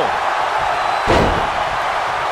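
A heavy body slams onto the wrestling ring mat with a loud thud.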